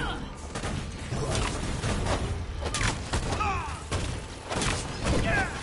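Game blasts and impacts crash repeatedly.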